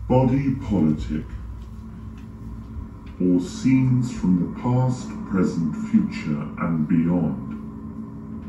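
A man speaks loudly and dramatically, with pauses.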